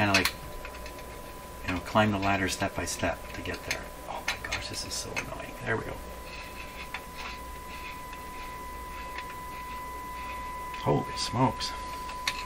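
Wires rustle and click faintly as a hand handles them.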